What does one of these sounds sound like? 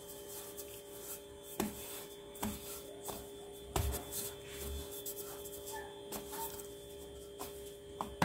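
A wooden rolling pin rolls over dough with a dull rumble.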